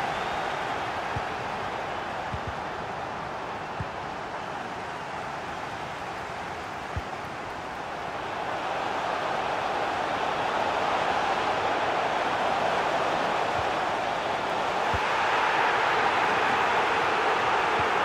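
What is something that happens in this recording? A stadium crowd roars steadily, swelling louder at times.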